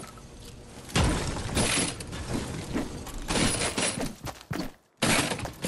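A pickaxe strikes hard objects with sharp metallic hits.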